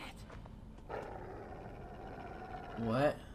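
A dog growls close by.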